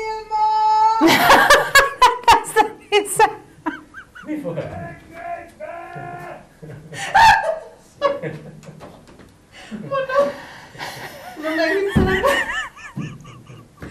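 A woman laughs and talks with animation, close by.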